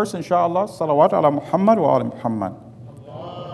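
A man speaks with feeling into a microphone.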